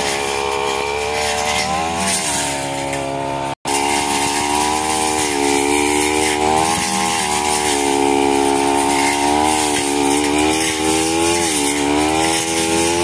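A petrol string trimmer whines loudly and steadily, its engine pitch dipping and rising.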